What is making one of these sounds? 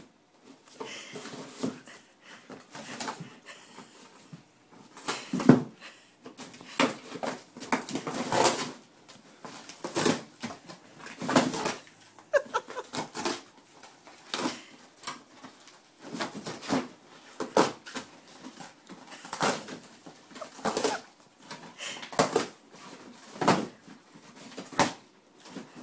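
Cardboard scraps rustle and scrape across the floor.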